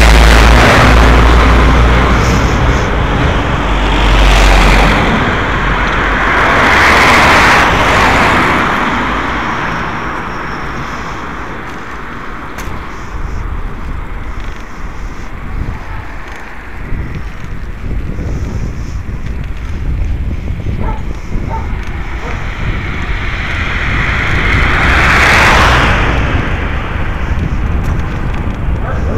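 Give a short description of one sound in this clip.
Wind rumbles and buffets against the microphone.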